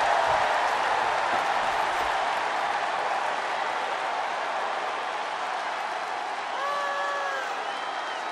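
A large crowd cheers loudly in a big arena.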